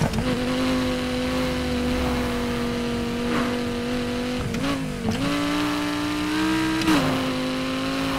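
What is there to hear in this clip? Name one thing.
Tyres screech on wet asphalt.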